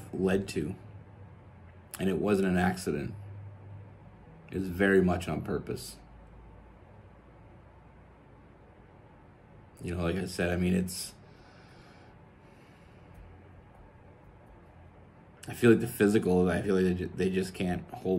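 A man speaks calmly and slowly into a close microphone, with long pauses.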